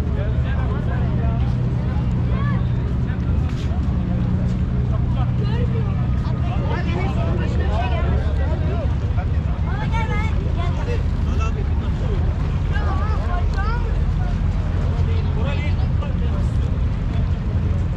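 Wind blows and rumbles.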